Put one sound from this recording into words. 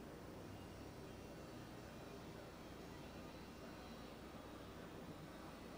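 A paintbrush softly strokes across canvas.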